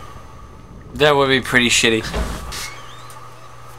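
A heavy wooden door creaks open.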